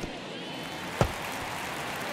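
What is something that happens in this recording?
A ball smacks into a catcher's mitt.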